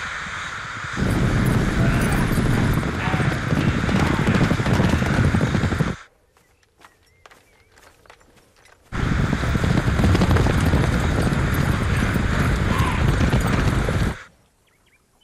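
Horses gallop in a thundering rumble of hooves.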